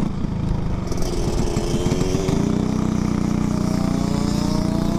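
Another racing kart engine buzzes close ahead.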